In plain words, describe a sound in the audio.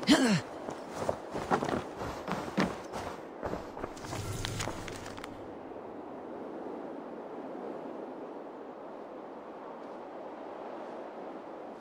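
Wind blows softly and steadily outdoors.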